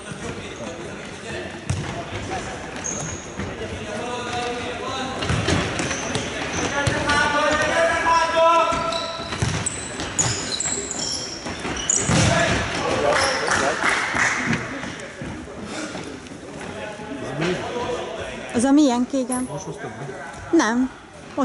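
Young men shout and call out to each other in an echoing hall.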